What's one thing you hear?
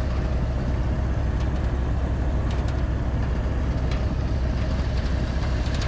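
A heavy engine rumbles steadily close by.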